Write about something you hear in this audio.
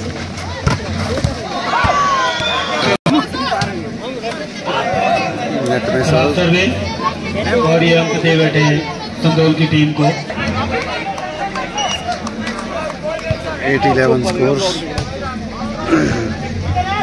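A crowd of men talks and shouts outdoors.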